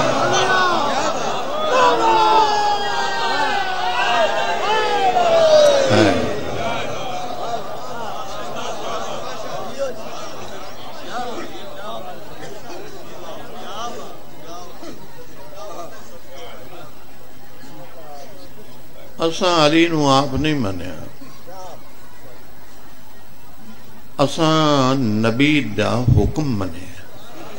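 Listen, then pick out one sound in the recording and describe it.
A middle-aged man speaks with passion through a microphone, his voice echoing over loudspeakers.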